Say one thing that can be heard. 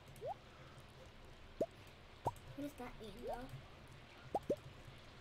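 Short rising blips sound as items are picked in a game menu.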